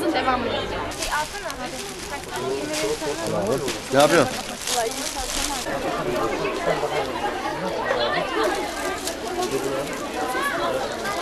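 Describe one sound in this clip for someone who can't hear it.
A crowd of young people chatters nearby outdoors.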